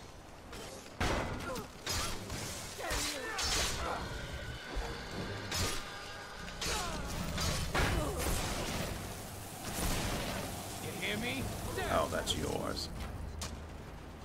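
Weapons clash and strike in a fierce fight.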